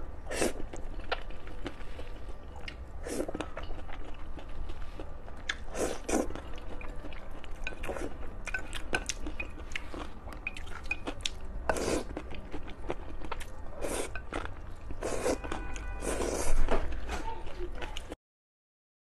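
A young woman chews food with wet smacking sounds.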